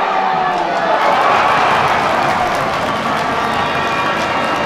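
A small crowd cheers loudly outdoors.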